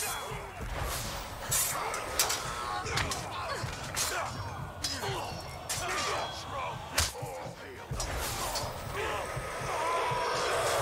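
Soldiers grunt and shout as they fight.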